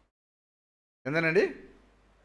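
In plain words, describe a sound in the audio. A man speaks with animation through a microphone.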